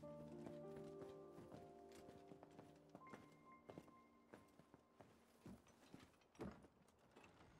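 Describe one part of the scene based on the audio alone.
Slow footsteps knock on a hard floor.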